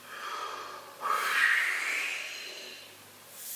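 A man breathes out hard into a tube.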